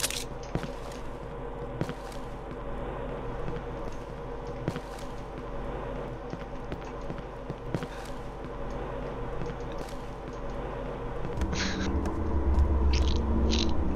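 Footsteps tap on hard pavement at an even pace.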